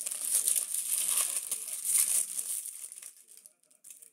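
Playing cards rustle and tap as a hand stacks them.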